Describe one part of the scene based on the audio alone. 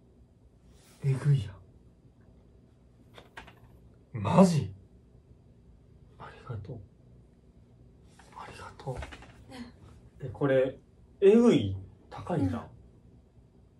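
A young man speaks in short, surprised bursts close by.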